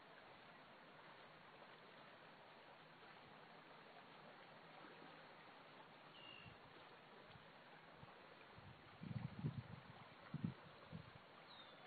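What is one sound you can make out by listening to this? Gentle water laps against a stony shore.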